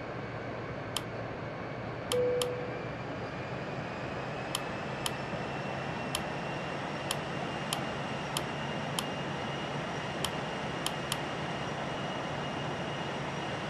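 Jet engines hum with a steady roar.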